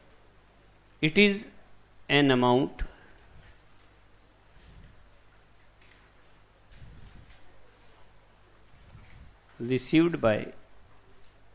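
A man speaks in short bursts.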